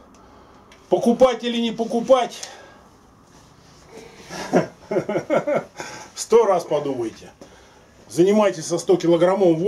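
An older man speaks and laughs close by.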